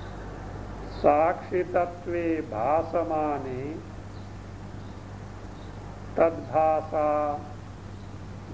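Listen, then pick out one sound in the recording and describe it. An elderly man speaks calmly and close by, in short phrases with pauses.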